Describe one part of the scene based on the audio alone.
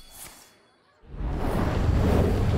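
A blast of fire roars loudly.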